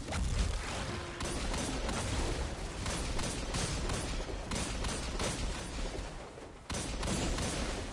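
A pistol fires rapid shots.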